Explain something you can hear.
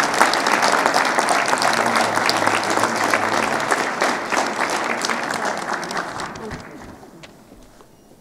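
A crowd applauds and cheers loudly in a large echoing hall, then fades.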